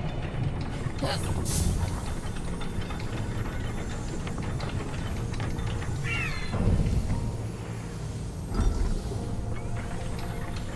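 Magic crackles and hums while a crate is lifted.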